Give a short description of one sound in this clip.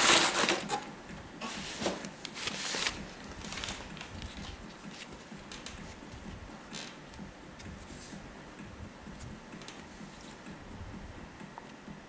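A sheet of cardboard is handled with soft scrapes.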